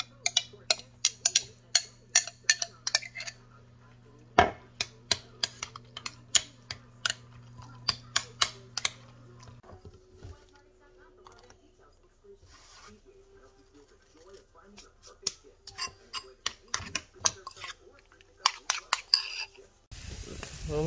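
A metal fork clinks and scrapes against a ceramic bowl.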